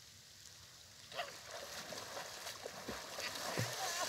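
Water splashes as someone dives in.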